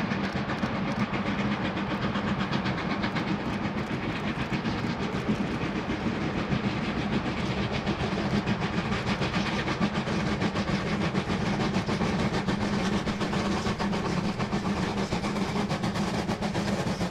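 A steam locomotive chuffs hard and fast as it approaches.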